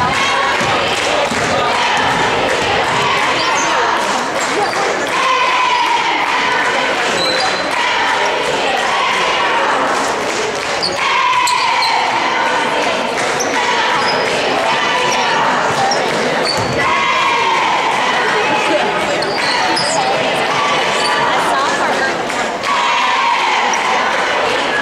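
A crowd of young people chatter and call out across the gym.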